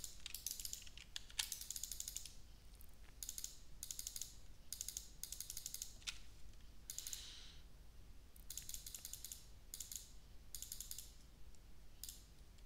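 Gunfire rattles in short, rapid bursts.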